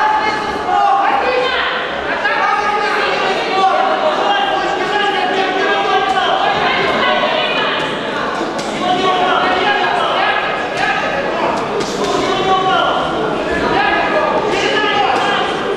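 Boxing gloves thud against a body.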